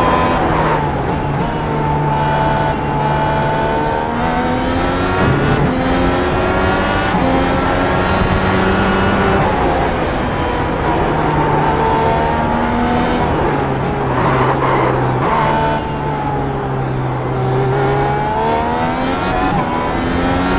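A racing car engine roars, rising and falling in pitch as it shifts gears.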